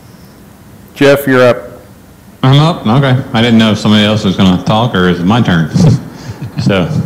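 A man speaks calmly through a microphone in a room with some echo.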